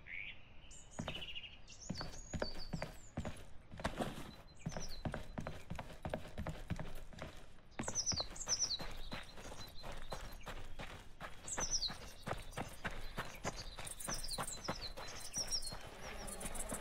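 Footsteps crunch steadily over the ground.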